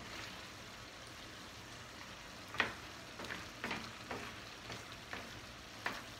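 A wooden spoon scrapes and clinks against a metal pan while stirring pasta.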